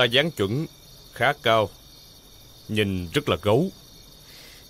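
A middle-aged man speaks tensely nearby.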